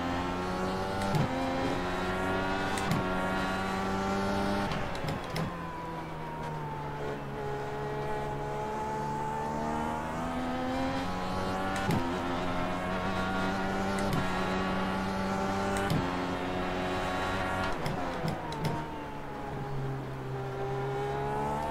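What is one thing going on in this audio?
A racing car engine screams at high revs, dropping in pitch with each gear change.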